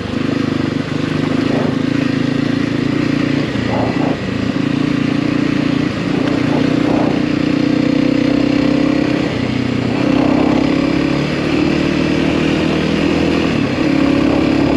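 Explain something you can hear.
Tyres crunch and rattle over loose gravel.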